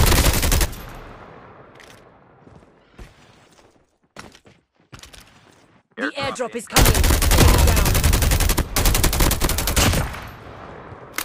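Gunfire and explosions from a video game ring out.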